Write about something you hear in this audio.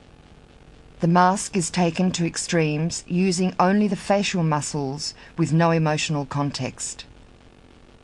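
A man speaks with animation up close.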